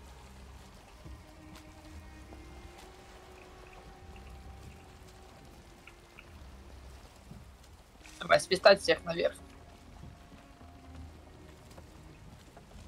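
Water swishes against the hull of a sailing boat.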